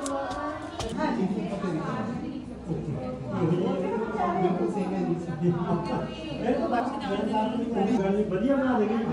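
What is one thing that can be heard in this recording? A woman speaks calmly to a group.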